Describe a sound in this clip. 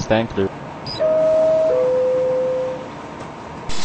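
A train's two-note chime sounds once.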